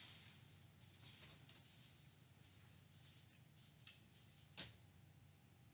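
Fruit bats squeak and chitter close by.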